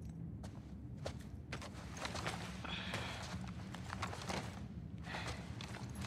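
Footsteps tread softly on carpet.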